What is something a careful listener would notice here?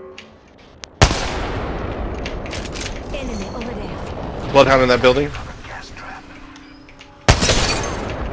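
A sniper rifle fires loud single shots that boom and echo away.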